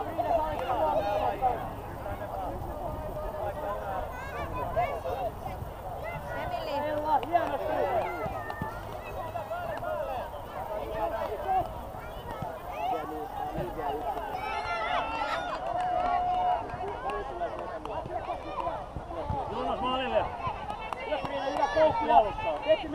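Children shout and call out in high voices across an open field.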